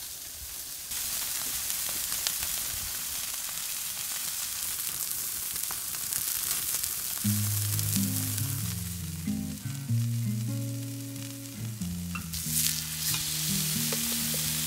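Meat sizzles loudly on a hot iron plate.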